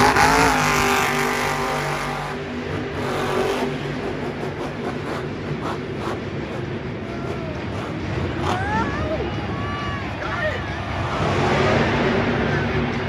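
A monster truck engine roars loudly as it revs.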